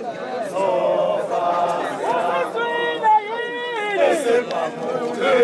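A crowd of men and women sing together nearby.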